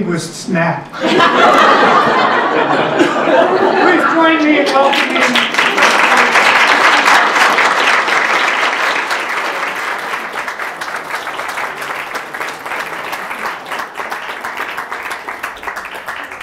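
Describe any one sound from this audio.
An audience applauds loudly, then the clapping slowly fades.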